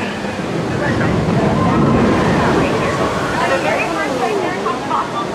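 A large puppet dinosaur lets out a low rumbling growl.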